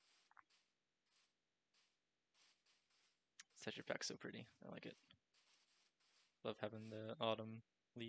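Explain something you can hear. Footsteps fall softly on grass.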